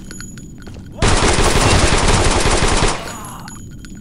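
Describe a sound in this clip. A submachine gun fires a rapid burst.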